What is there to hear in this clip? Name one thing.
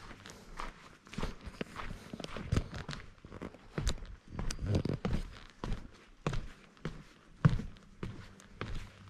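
Footsteps thud down wooden steps.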